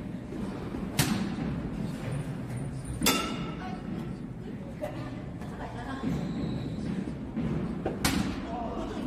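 A metal bat hits a baseball with a sharp, ringing ping.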